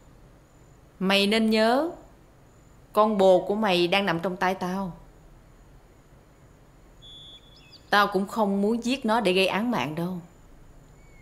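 A young woman speaks sharply and firmly nearby.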